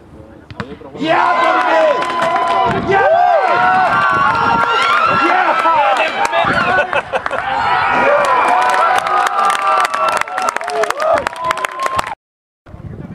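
A crowd of spectators shouts and cheers close by.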